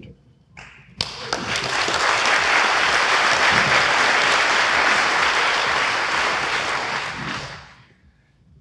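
An audience applauds loudly in a large space.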